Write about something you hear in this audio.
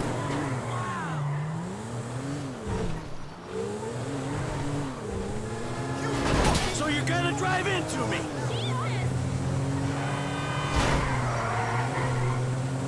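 Tyres screech as a car skids round a corner.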